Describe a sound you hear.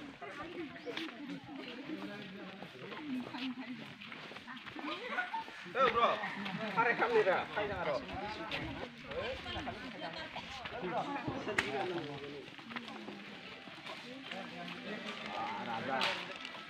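Children chatter and shout excitedly outdoors nearby.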